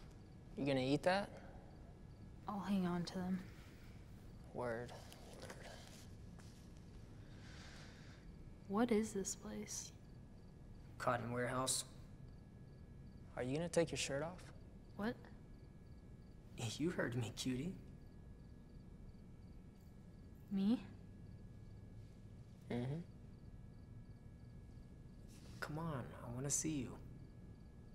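A young man speaks calmly in short replies.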